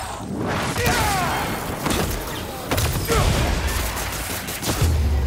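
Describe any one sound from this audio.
Heavy blows thud as fighters brawl.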